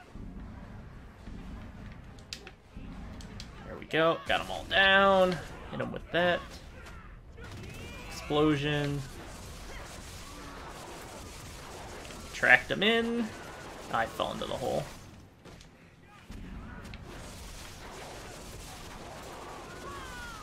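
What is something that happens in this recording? Game combat effects whoosh and clash steadily.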